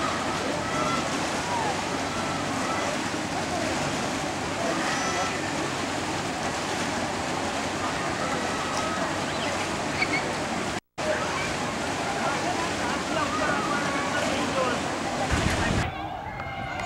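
A crowd of children and adults chatters and shouts in a pool.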